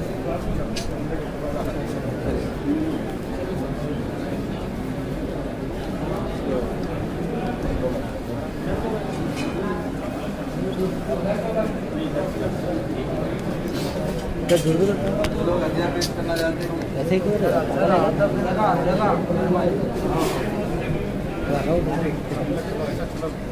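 A crowd of men talk and murmur close by.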